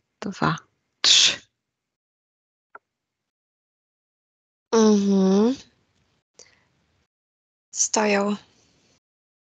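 A middle-aged woman speaks slowly and calmly into a headset microphone, with long pauses.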